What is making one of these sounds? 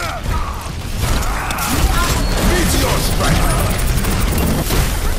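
A game gun fires rapid bursts of energy shots.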